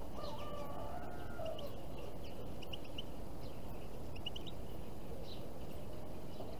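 Small birds chirp softly outdoors.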